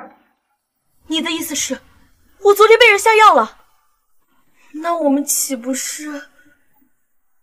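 A young woman speaks with worry, close by.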